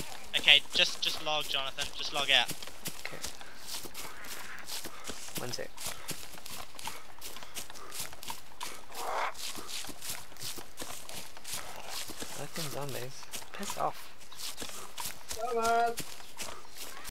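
Footsteps rustle steadily through undergrowth.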